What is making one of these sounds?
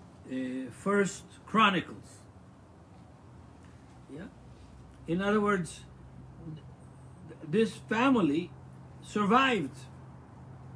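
An elderly man speaks slowly and haltingly, close to the microphone, with long pauses.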